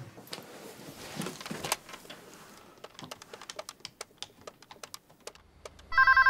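Phone buttons click as a man dials.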